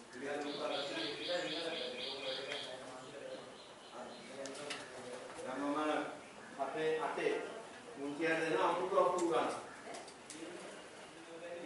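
A man speaks calmly, explaining as he lectures.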